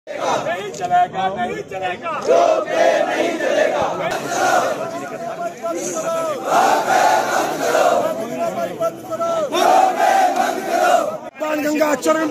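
A large crowd outdoors chants slogans loudly in unison.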